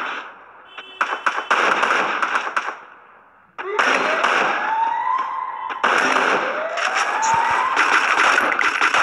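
Rapid rifle shots crack in bursts.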